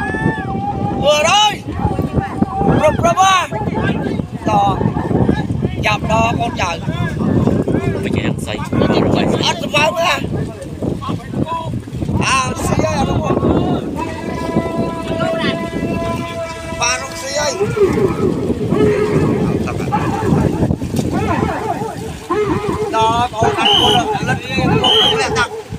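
Many paddles splash through water in a steady rhythm.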